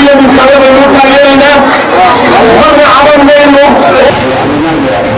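A man sings loudly into a microphone through a loudspeaker.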